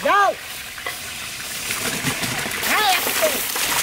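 Dry rice pours into a pot of boiling water.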